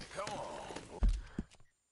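A rider lands heavily in a leather saddle with a thud.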